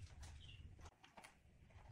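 A plug clicks into a power socket.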